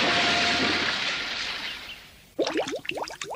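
Water splashes and churns, then fades.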